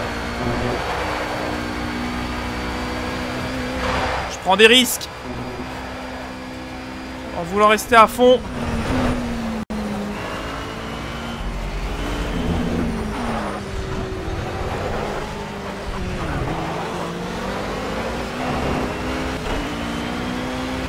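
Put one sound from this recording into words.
A racing car engine roars steadily, its pitch rising and falling through gear changes.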